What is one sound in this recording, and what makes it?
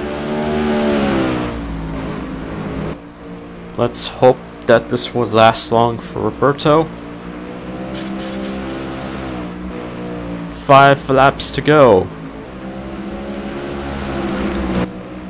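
A race car engine drones steadily at high revs.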